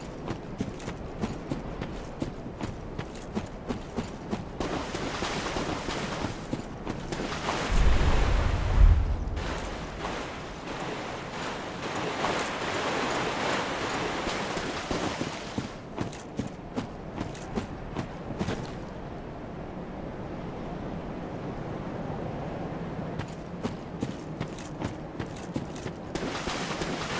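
Armoured footsteps run steadily over stone.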